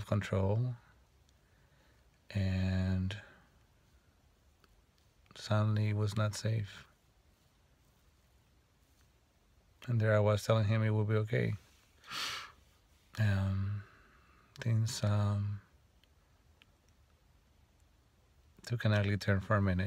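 A middle-aged man speaks slowly and calmly close by, in short phrases with pauses.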